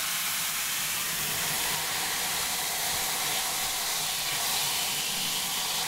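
Water sprays steadily from a shower head onto hair.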